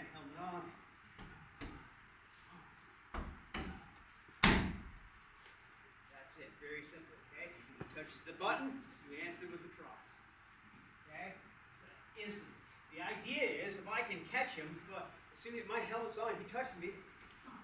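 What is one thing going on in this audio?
Kicks smack against a padded shield.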